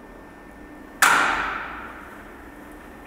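A metal gate swings open and clangs loudly, ringing briefly.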